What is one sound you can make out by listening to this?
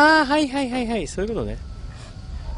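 A dog whines and barks nearby.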